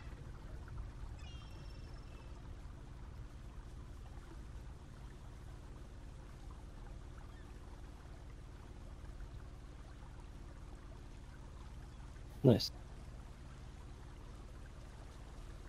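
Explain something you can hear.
Water churns and splashes behind a moving boat.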